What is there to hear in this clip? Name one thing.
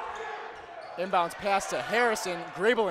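A crowd of young men chants loudly.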